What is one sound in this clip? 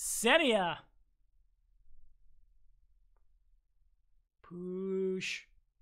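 A young woman speaks animatedly into a close microphone.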